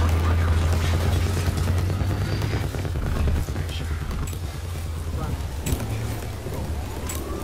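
Tank treads clank and squeak as the tank rolls.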